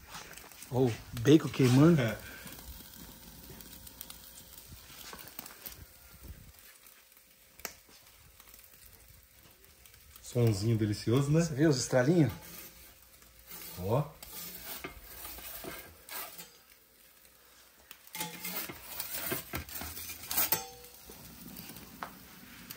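A wood fire crackles inside an oven.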